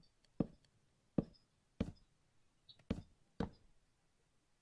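Wooden blocks thud softly as they are placed, one after another.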